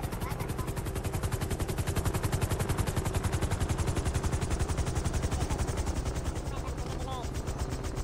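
A helicopter's rotor chops rapidly nearby.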